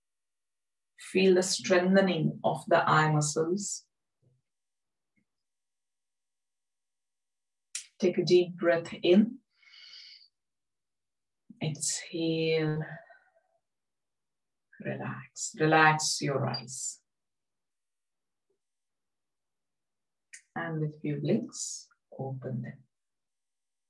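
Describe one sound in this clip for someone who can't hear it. A woman speaks calmly and slowly into a close microphone, with long pauses.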